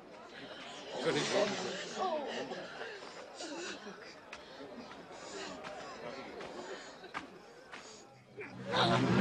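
Men and women in a crowd murmur and call out nearby.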